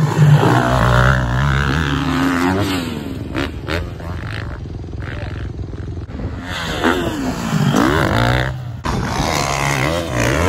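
A dirt bike engine revs loudly and roars past.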